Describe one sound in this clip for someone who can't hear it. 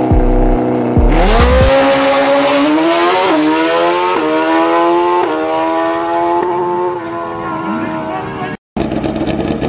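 A racing motorcycle engine roars off at full throttle, rising in pitch through several quick gear shifts as it speeds away.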